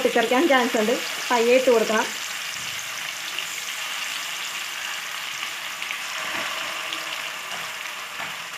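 Oil sizzles steadily as food fries in a pan.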